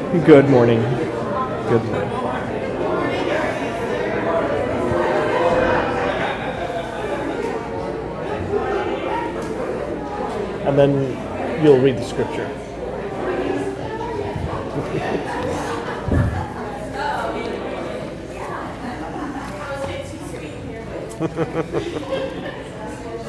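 Many men and women chat at once in a large echoing hall.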